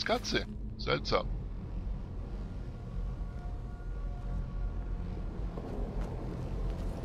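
A low, steady magical hum drones throughout.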